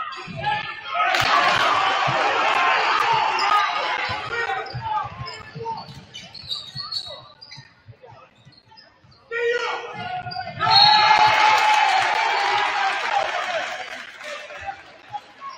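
A crowd cheers and shouts loudly in an echoing gym.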